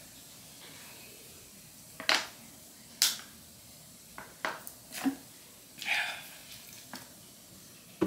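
A young woman gulps water from a plastic bottle.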